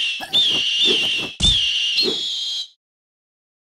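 A cartoon eagle screeches.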